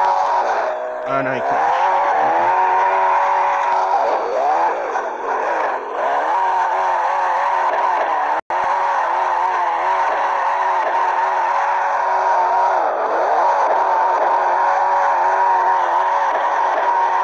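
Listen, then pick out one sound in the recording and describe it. Tyres screech loudly as a car drifts.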